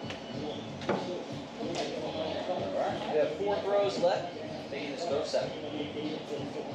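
Young boys talk and call out with animation in an echoing room.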